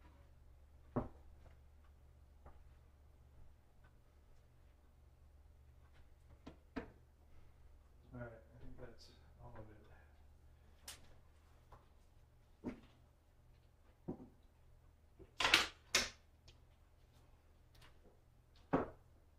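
Objects knock and clatter as a man handles them.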